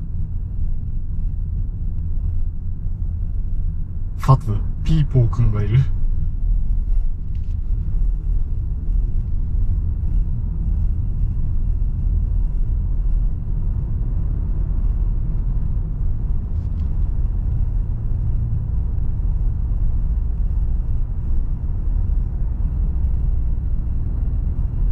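A car engine hums with a low, steady road rumble from inside the car.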